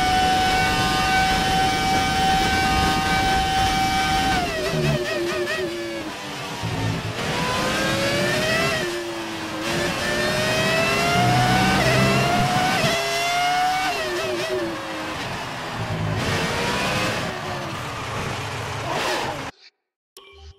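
A racing car engine screams at high revs, rising and falling as it shifts gears and brakes into corners.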